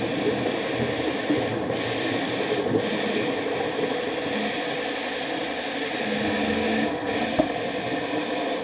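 A small robot's motors whir as its legs move.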